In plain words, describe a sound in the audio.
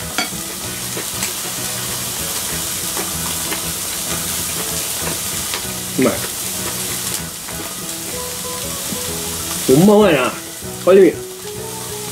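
Meat sizzles steadily on a hot grill.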